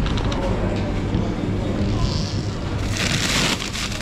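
A freezer lid slides open.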